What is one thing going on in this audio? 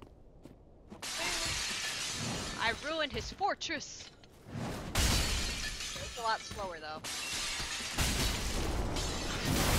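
A sword swings and clangs.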